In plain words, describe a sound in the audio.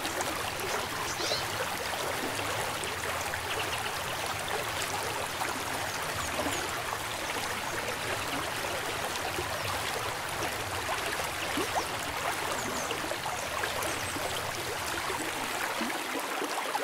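A river rushes and splashes over rocks close by.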